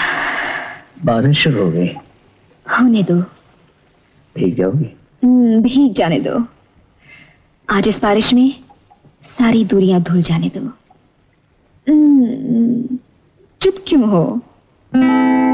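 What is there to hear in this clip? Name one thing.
A woman sings close by.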